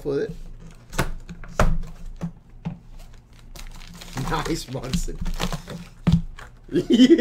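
Card packs tap on a table.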